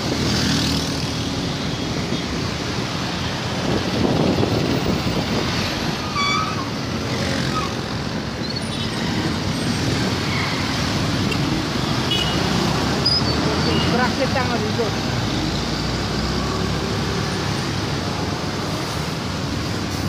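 Traffic rumbles by steadily on a busy street.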